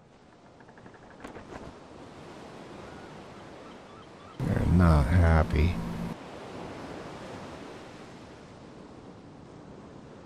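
Waves wash gently against a shore.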